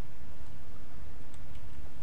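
Armored footsteps thud softly on a stone floor.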